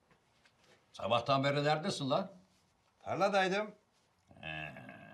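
An elderly man speaks with feeling nearby.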